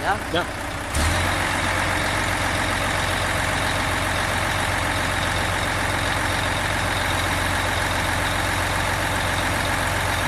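A truck crane's hydraulic motor drones steadily as the boom swings and lowers.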